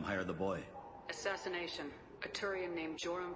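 A man answers in a calm voice.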